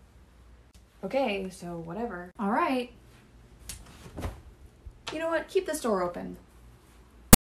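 A young woman speaks expressively close by.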